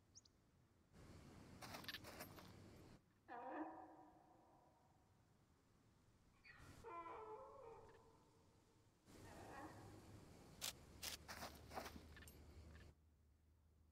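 Soil scrapes and rustles.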